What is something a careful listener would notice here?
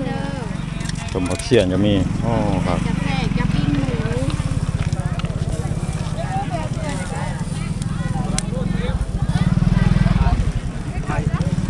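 A motorbike engine idles and hums nearby.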